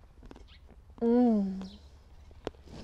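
A young woman hums with pleasure while eating.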